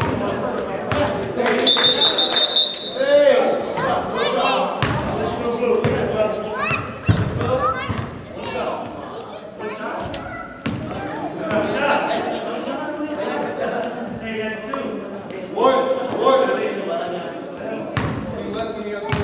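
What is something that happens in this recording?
A basketball bounces on a hard gym floor, echoing in a large hall.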